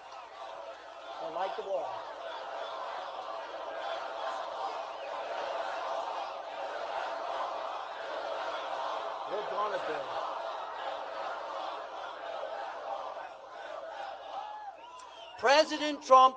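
A large crowd cheers and chants outdoors.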